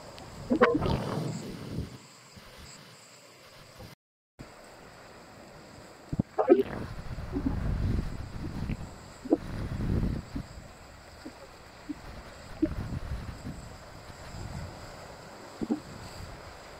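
Waves surge and crash against rocks.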